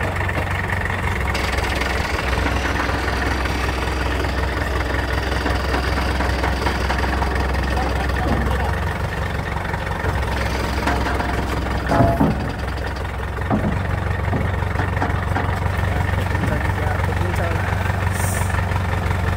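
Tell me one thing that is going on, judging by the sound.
A crane engine hums steadily.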